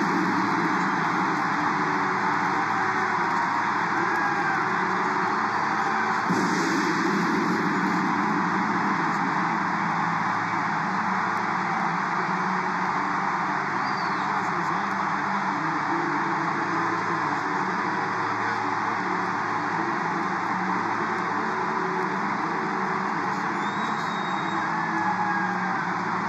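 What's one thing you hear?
A large stadium crowd cheers and roars loudly throughout.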